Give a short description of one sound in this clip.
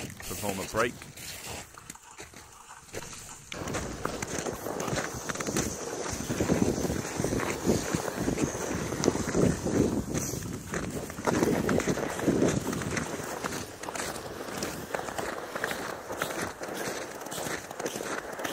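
A loaded sled scrapes and hisses over snow.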